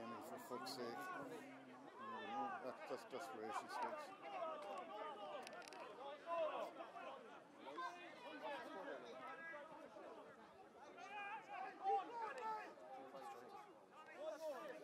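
Spectators close by chatter and call out outdoors.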